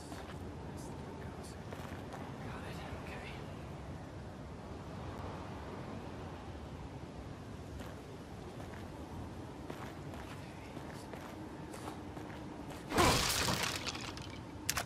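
Footsteps walk steadily on stone.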